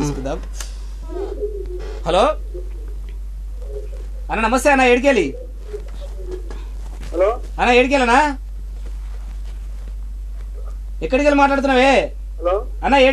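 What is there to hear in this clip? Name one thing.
A young man sings in short melodic phrases close by.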